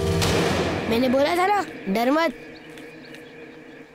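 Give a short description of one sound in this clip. A boy's footsteps slap across wet pavement.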